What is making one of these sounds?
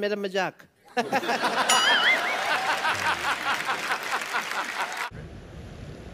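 An audience laughs and claps.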